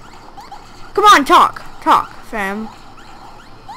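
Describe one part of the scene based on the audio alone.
Cartoonish electronic attack sounds zap and warble in quick bursts.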